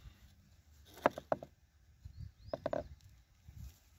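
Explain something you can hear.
A young man speaks briefly and calmly, close by.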